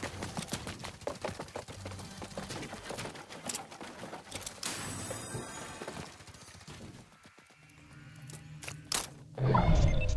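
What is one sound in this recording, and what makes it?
Footsteps thud quickly across wooden boards.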